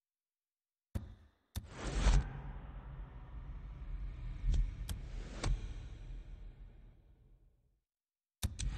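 A deep whooshing rumble swells and slowly fades.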